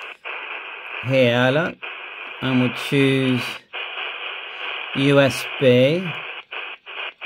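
A man's voice comes through a handheld radio's small loudspeaker in short bursts.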